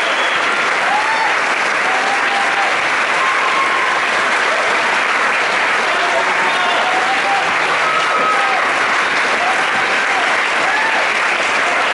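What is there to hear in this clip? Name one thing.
An audience chatters loudly in a large echoing hall.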